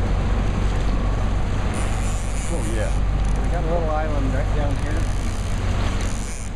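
Fast water rushes and churns loudly close by.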